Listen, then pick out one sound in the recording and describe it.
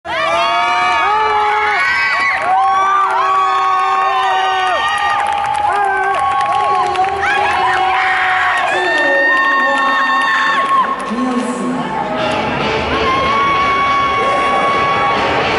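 Music plays loudly over loudspeakers in a large hall.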